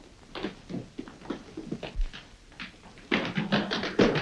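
Footsteps scuffle and run on stone.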